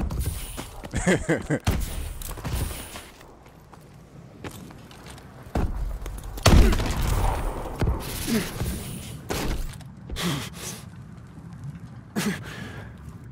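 Gunshots crack in quick bursts, close by.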